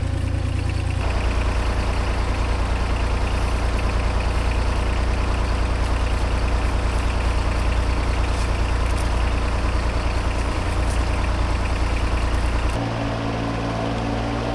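A tractor engine idles nearby with a steady low rumble.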